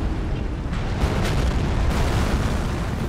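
Boulders crash and shatter into flying debris.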